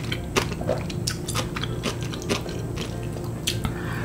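Chopsticks click against a plate.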